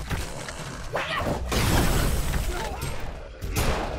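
Weapons clash in a noisy battle.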